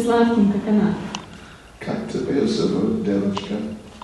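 A small group of people laughs softly.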